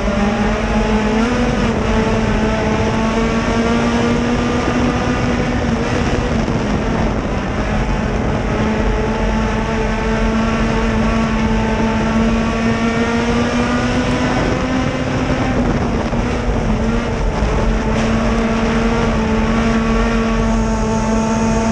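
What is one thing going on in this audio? A race car engine roars loudly up close, its pitch rising and falling.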